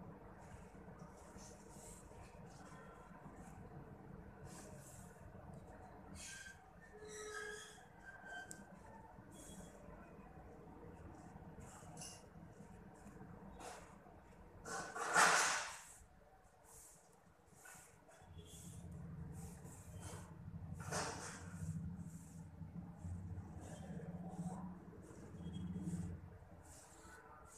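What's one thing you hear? Thread rasps softly as it is pulled through cloth, again and again.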